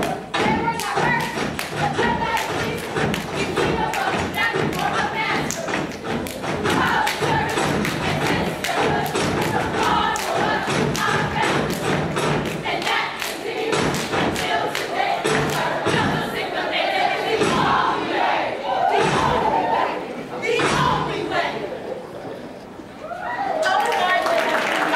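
A group of young women chant in unison.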